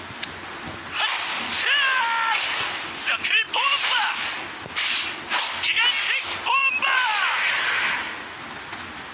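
Magic spells whoosh and crackle in a fast game battle.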